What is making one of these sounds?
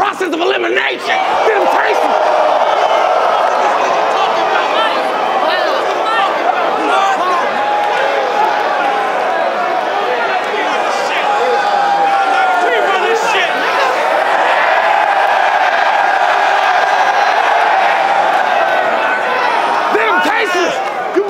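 A large crowd cheers and roars in a big echoing hall.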